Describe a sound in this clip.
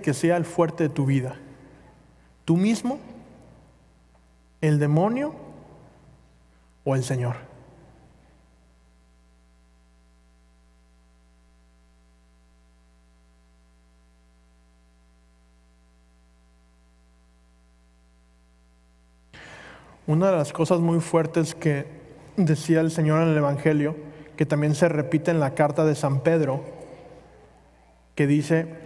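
A man sings slowly through a microphone in a large echoing hall.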